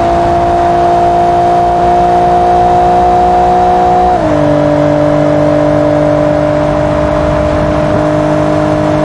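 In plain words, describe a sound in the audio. A sports car engine roars steadily at high speed, dropping in pitch briefly as it shifts gear.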